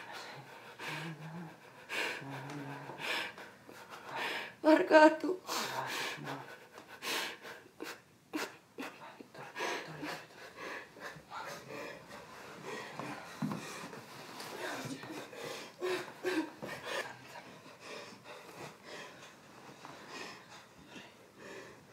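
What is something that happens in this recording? A woman sobs and cries loudly close by.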